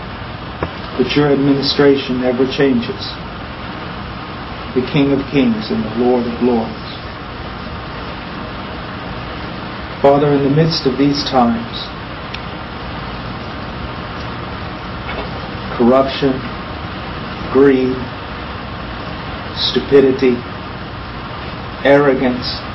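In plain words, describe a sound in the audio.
A middle-aged man speaks slowly and quietly through a clip-on microphone, with long pauses.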